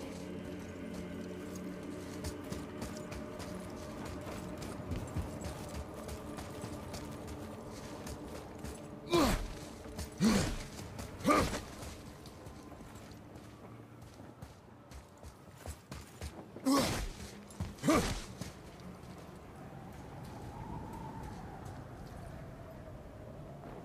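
Heavy footsteps thud on stone.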